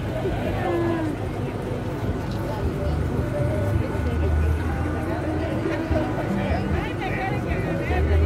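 A crowd of men and women chatters outdoors nearby.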